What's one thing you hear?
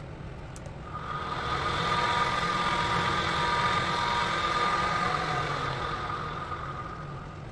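A milling cutter grinds into metal with a shrill, rasping whine.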